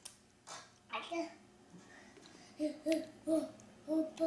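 A small child chants excitedly in short bursts close by.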